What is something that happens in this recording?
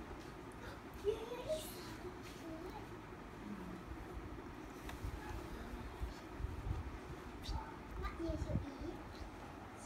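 A baby babbles and coos softly close by.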